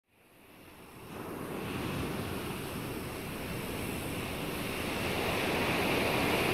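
Gentle waves wash onto a beach and roll steadily.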